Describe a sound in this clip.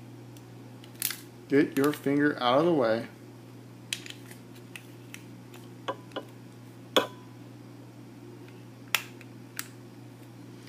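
Metal plates clink and tap together.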